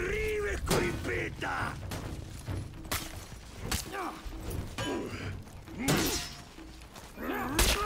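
Metal weapons clash and clang sharply.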